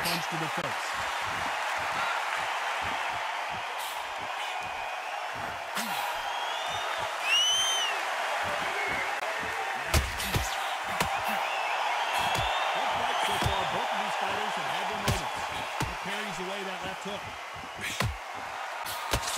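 A crowd murmurs and cheers steadily.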